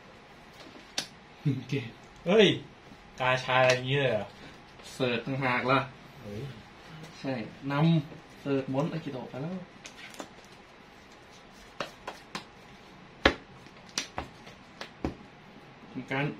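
Playing cards slide and tap on a soft mat.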